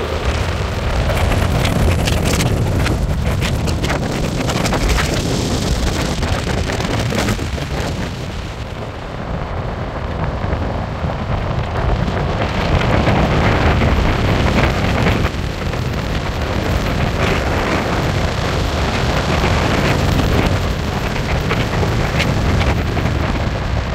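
Wind rushes and buffets against the car.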